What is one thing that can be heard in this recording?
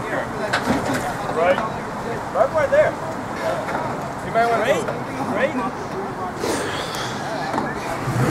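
Tyres grind and scrape over rock.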